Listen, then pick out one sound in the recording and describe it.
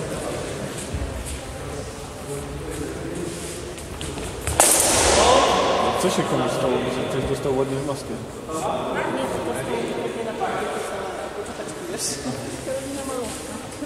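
Swords clash and clatter in a large echoing hall.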